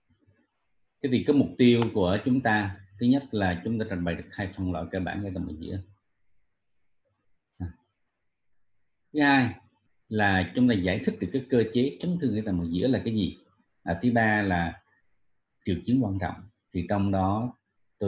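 A man lectures calmly through a microphone on an online call.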